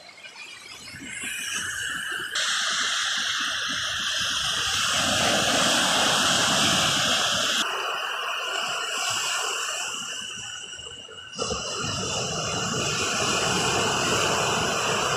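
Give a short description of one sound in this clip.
Small waves wash and break on the shore close by.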